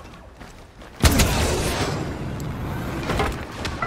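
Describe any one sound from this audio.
An explosion booms close by and rumbles away.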